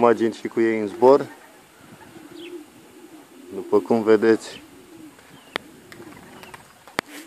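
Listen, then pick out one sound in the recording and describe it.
A flock of pigeons flaps its wings overhead.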